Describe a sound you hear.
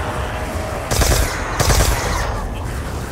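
A gun fires a loud burst of shots.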